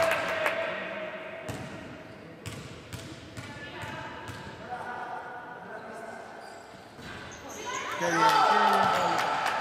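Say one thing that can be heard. Young women players call out to each other across the court.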